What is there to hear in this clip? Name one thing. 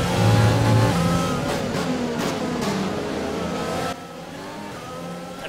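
A racing car engine roars at high revs, its pitch shifting as it changes gear.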